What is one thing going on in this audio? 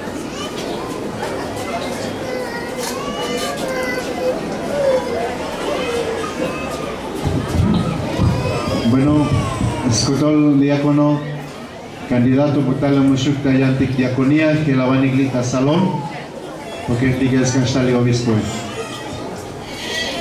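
A crowd of men and women pray aloud together in an echoing room.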